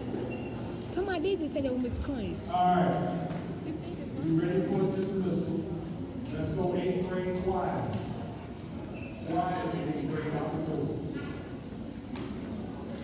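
A young man talks close by in a casual way.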